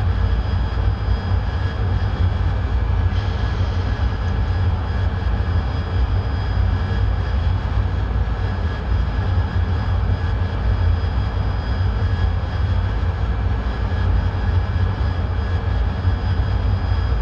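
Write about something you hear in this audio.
A jet engine drones steadily with a deep, low rumble.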